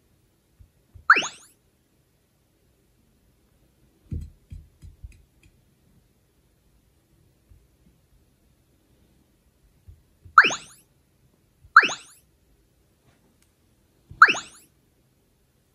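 A tablet plays short, bright rising chimes.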